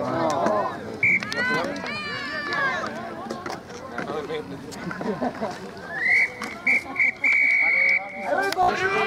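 A referee blows a whistle in short, sharp blasts.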